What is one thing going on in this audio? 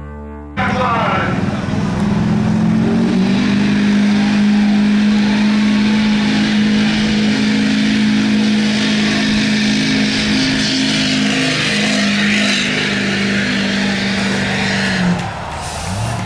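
A diesel pickup truck engine roars loudly at a steady high pitch.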